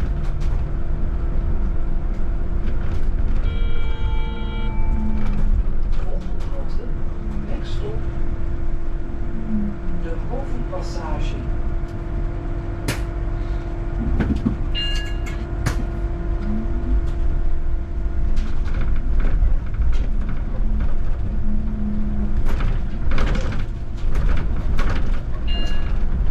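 Tyres roll steadily along a paved road.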